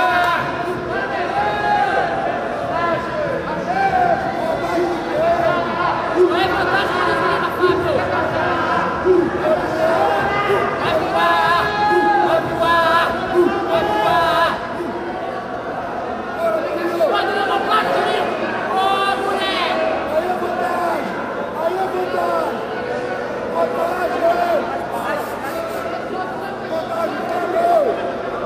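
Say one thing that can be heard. A crowd of spectators shouts and calls out in a large echoing hall.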